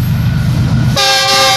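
A train horn blares loudly.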